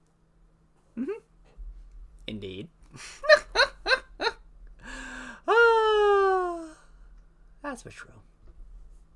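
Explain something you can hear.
A young man laughs loudly and excitedly close to a microphone.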